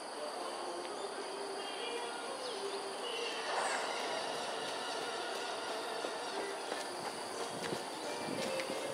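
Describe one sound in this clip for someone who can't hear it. A bird calls from a treetop outdoors.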